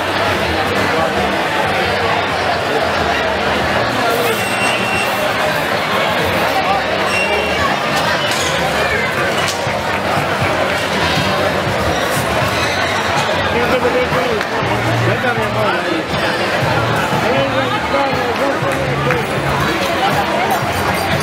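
A lively crowd of men and women chatters and talks loudly outdoors.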